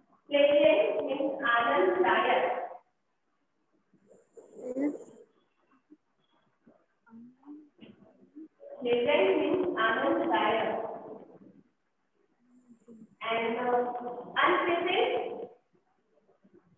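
A woman speaks clearly, heard through an online call.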